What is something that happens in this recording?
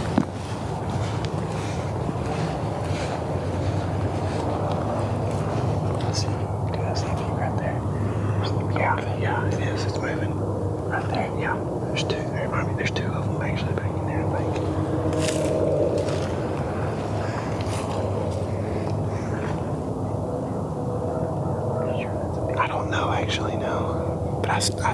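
Dry grass rustles and crunches underfoot.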